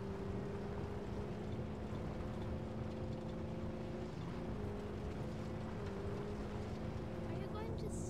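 A vehicle engine roars steadily.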